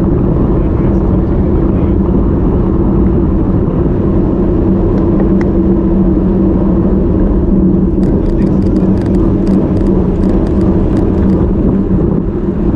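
Wind buffets loudly and steadily, outdoors.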